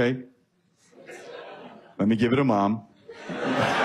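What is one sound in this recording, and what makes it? A man speaks animatedly into a microphone on stage.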